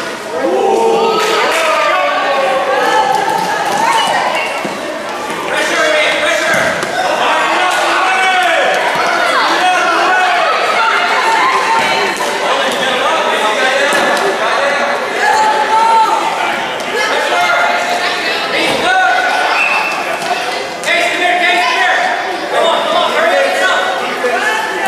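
Children shout and call out loudly in a large echoing hall.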